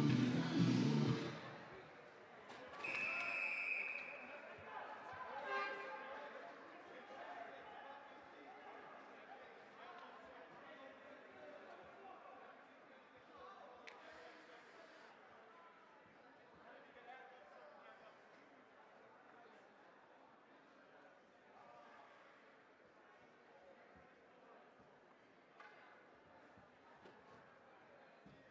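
A crowd murmurs and chatters in an echoing rink.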